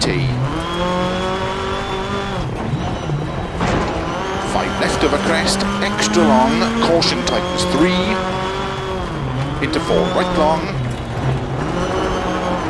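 Tyres crunch and skid on loose gravel.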